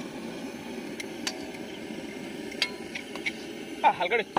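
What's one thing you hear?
A metal ladle clinks against a steel plate.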